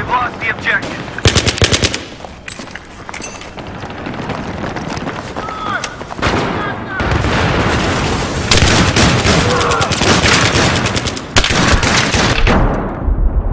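Automatic rifle fire rattles in bursts.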